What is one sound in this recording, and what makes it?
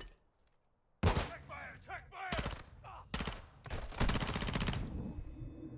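Gunshots ring out loudly indoors.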